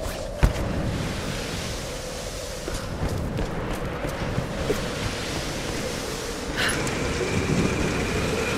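Footsteps crunch on gravel and wooden boards.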